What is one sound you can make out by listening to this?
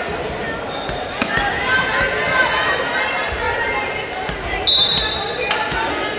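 Players' shoes squeak on a hard court.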